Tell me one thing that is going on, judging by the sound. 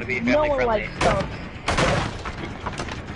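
Wooden boards crack and splinter with heavy blows.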